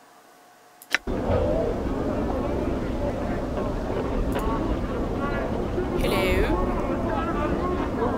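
A busy town bustle hums steadily.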